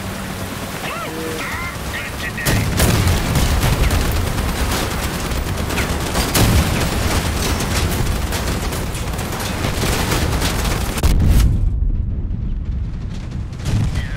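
A vehicle engine roars and rumbles steadily.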